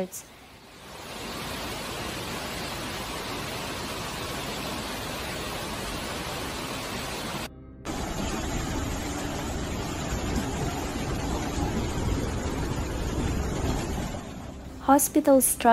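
Muddy floodwater rushes and roars past.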